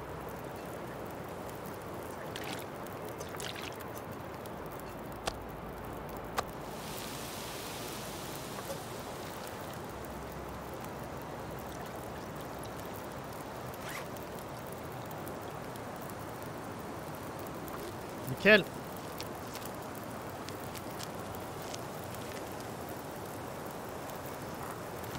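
A wood campfire crackles.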